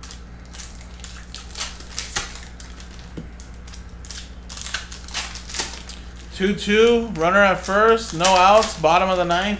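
Trading card packs rustle and crinkle as they are torn open.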